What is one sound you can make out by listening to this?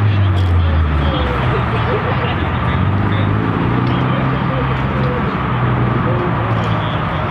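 Car engines idle with a deep, steady rumble.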